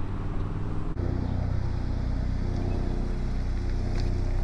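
A car engine idles nearby with a low, steady hum.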